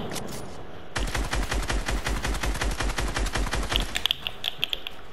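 A rifle fires rapidly in quick bursts.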